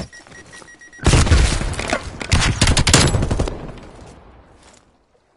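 An automatic rifle fires rapid shots in a video game.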